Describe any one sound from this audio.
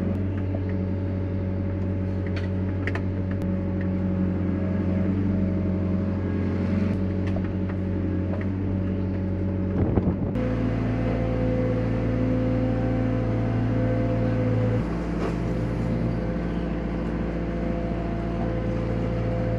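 A hydraulic pump whines as a grab arm lifts and swings.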